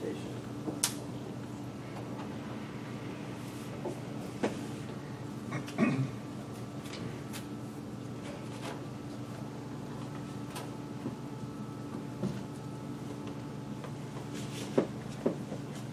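Papers rustle and tap close by.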